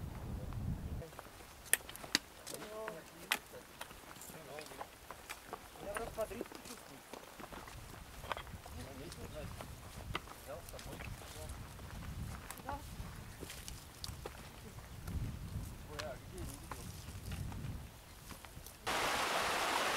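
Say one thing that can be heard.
Footsteps crunch on dry grass and gravel up a slope.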